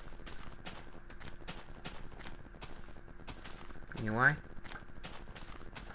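Footsteps thud steadily on grass.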